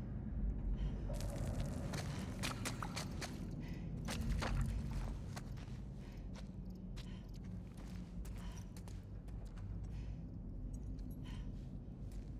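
Footsteps crunch on rubble and debris.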